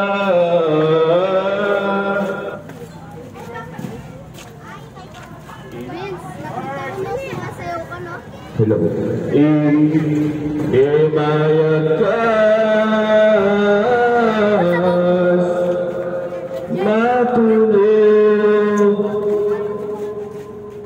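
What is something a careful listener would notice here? A man chants a slow, drawn-out melody through loud speakers.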